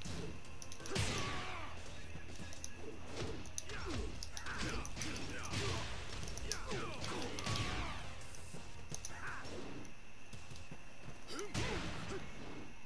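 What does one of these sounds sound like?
Magical blasts whoosh and crackle with each hit.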